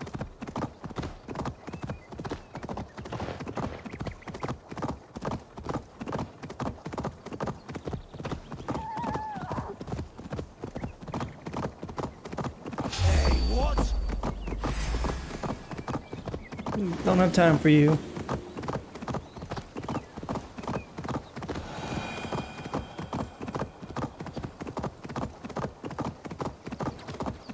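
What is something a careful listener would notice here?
Horse hooves gallop rapidly on a stony path.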